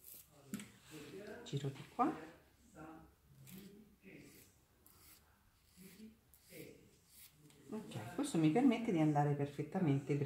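A nail file rasps back and forth across a fingernail.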